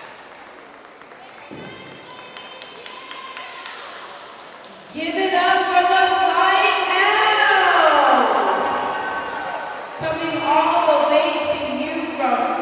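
Shoes stomp and squeak on a wooden floor in a large echoing hall.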